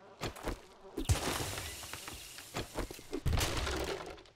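A wooden club thuds against a body.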